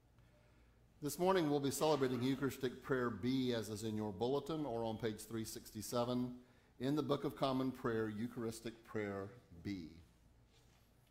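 An elderly man speaks calmly through a microphone in an echoing hall.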